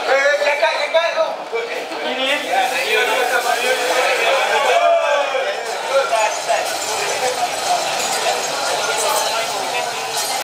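A crowd of people chatter and call out loudly in a large echoing hall.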